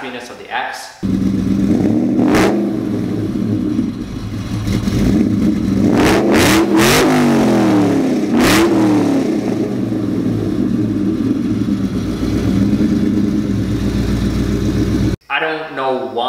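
A car engine idles with a deep, lumpy rumble and revs up a few times.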